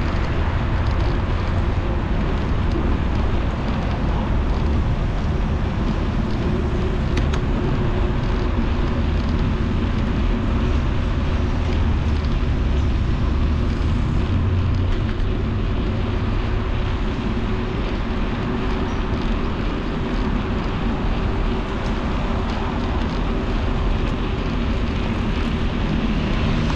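Wind rushes loudly past a moving rider.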